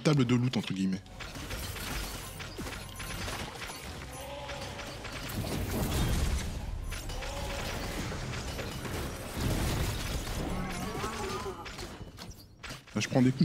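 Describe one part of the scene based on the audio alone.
Magic blasts and explosions crackle and boom in a fast fight.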